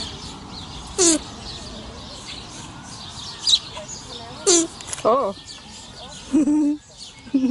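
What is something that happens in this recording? A lemur gives loud, sharp calls close by, again and again.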